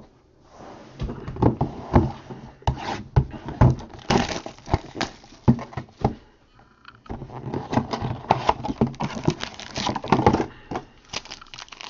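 Plastic wrap crinkles and tears as a box is unwrapped.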